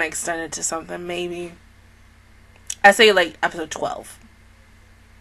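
A young woman speaks calmly and close into a microphone.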